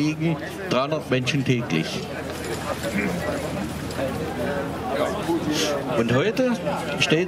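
An elderly man speaks into a microphone, heard through a loudspeaker outdoors.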